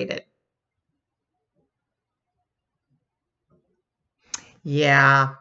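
A middle-aged woman speaks briefly and warmly, close to a microphone.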